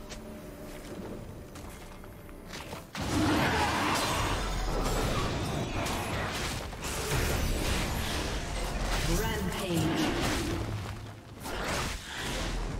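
Magic spells crackle and blast in a fierce fight.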